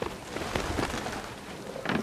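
Crows flap their wings.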